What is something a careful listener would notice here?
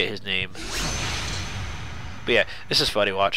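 A sharp slashing whoosh sweeps through the air.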